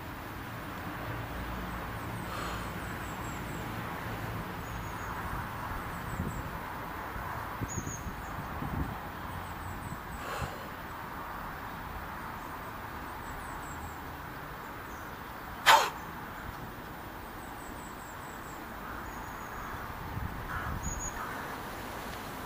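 A man breathes slowly and deeply nearby.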